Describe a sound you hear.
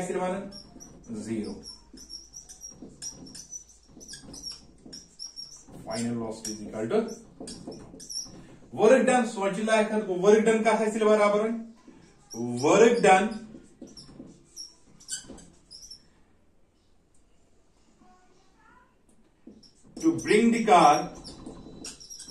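A man talks calmly, explaining.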